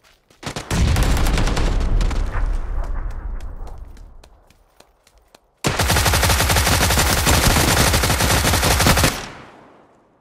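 Automatic gunfire rattles loudly in rapid bursts.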